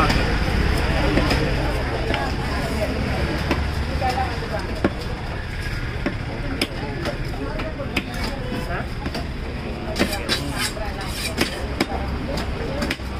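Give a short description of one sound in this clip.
A heavy blade chops into a fish and thuds on a wooden block.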